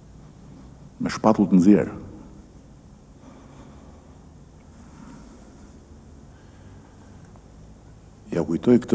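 A middle-aged man speaks calmly into a microphone, in short bursts with long pauses.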